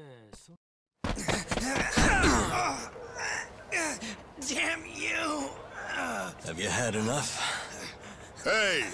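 A young man speaks angrily, close by.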